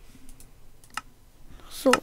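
A menu button clicks.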